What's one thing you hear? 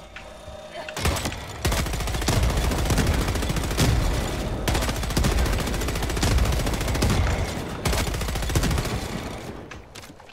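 A heavy gun fires rapidly in loud, roaring bursts.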